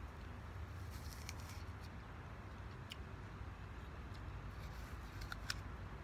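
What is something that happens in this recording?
A woman bites into crisp fruit with a crunch.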